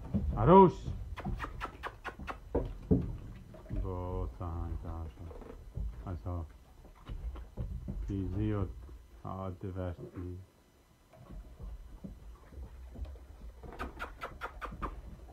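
Small paws scrabble on a wooden floor.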